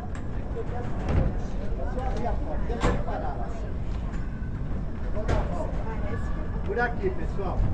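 Several adult passengers chat nearby.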